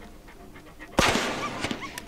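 A gunshot bangs loudly.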